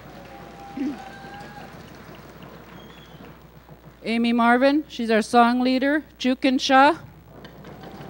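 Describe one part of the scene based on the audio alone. A woman speaks clearly into a microphone over a loudspeaker.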